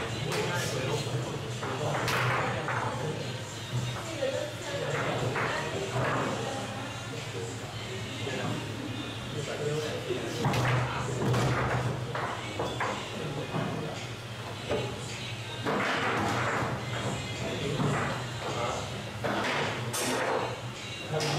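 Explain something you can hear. A foosball ball knocks against the plastic figures and the table walls.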